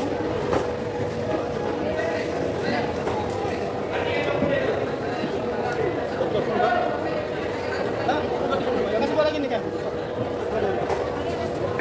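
A crowd of voices murmurs throughout.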